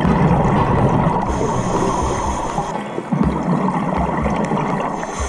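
A scuba regulator hisses as a diver breathes underwater.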